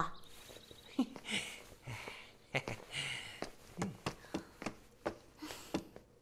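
Footsteps walk away.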